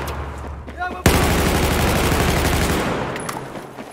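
An assault rifle fires a rapid burst.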